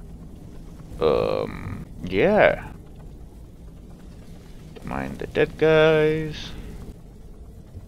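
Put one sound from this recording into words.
A young woman speaks with animation into a nearby microphone.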